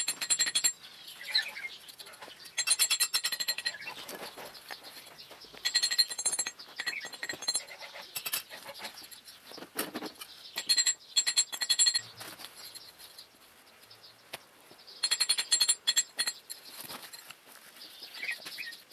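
Stone blocks knock and scrape close by.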